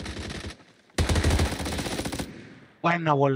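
Gunshots fire in a rapid burst.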